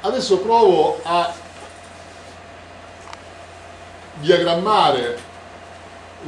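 A middle-aged man speaks calmly and clearly nearby.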